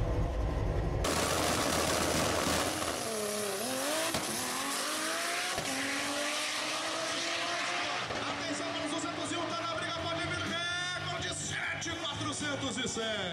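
A race car engine screams past at full throttle and fades into the distance.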